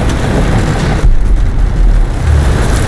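A loud crash bursts out.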